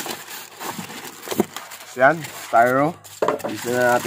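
Foam packing pieces squeak and rub against cardboard.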